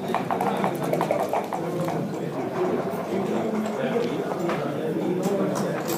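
A game piece clacks against a wooden board.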